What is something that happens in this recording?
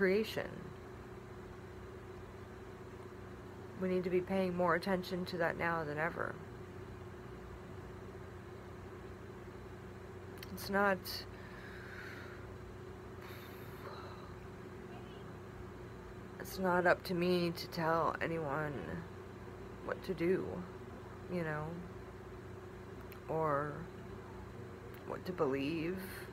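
A middle-aged woman talks calmly and close to a microphone, in short bursts with pauses.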